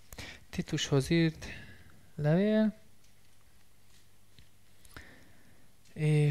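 A man speaks in short bursts in a quiet room.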